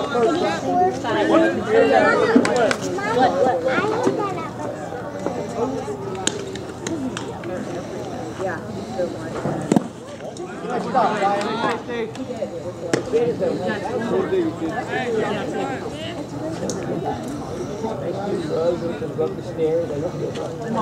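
Young men and boys call out and chatter from across an open field.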